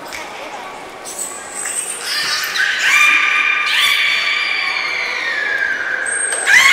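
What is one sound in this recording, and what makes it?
Beluga whales whistle and chirp in high, gliding tones.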